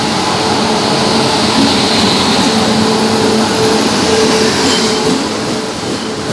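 An electric locomotive hums as it passes.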